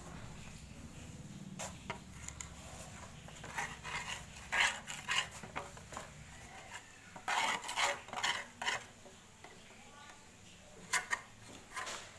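A wooden board knocks and scrapes nearby.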